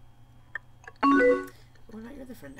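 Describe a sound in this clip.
A short electronic message chime rings out.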